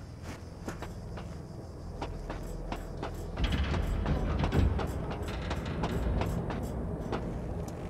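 Hands and feet knock on the rungs of a metal ladder.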